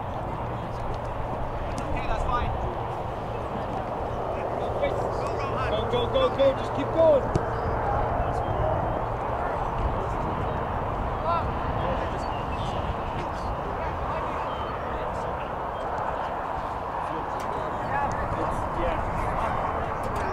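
Young men shout to one another from a distance outdoors.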